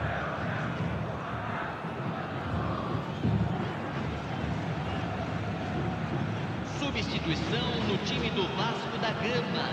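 A stadium crowd murmurs and cheers in a large open space.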